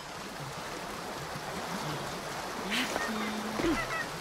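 Water rushes and churns nearby.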